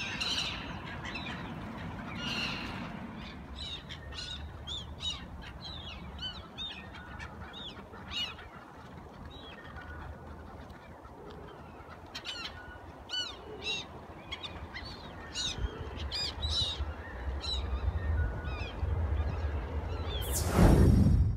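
Seagulls call repeatedly over water.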